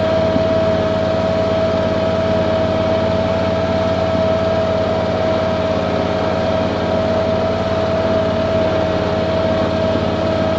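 A lawn mower engine drones steadily close by.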